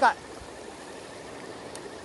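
A shallow stream rushes over rocks.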